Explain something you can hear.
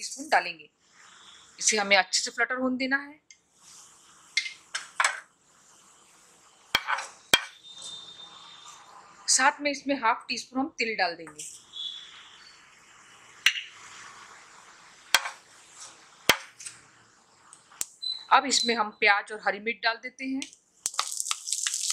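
Oil sizzles gently in a hot pan.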